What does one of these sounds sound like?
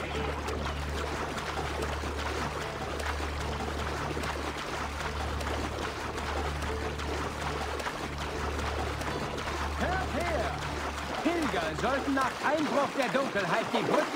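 Water splashes steadily.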